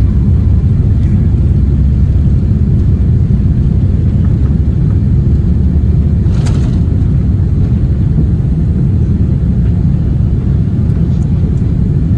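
Jet engines roar steadily as an airliner taxis, heard from inside the cabin.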